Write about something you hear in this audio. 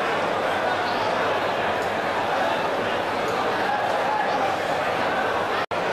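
A man in the crowd shouts with excitement.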